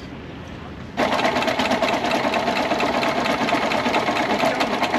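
A sewing machine runs fast with a rapid, steady whirring rattle.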